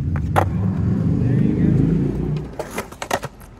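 Skateboard wheels rumble over concrete.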